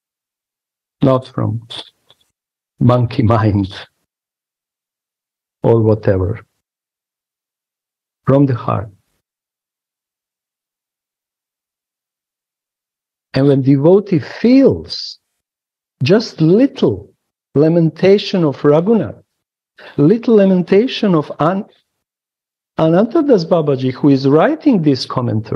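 A middle-aged man speaks in short bursts and then at length through an online call.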